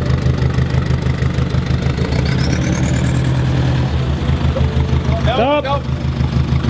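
A truck engine revs hard and steadily.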